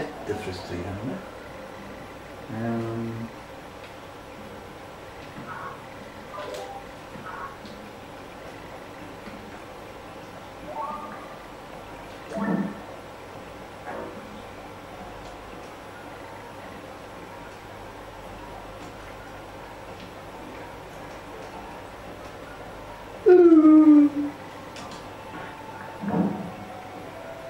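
Short electronic game sound effects chirp and blip from a loudspeaker now and then.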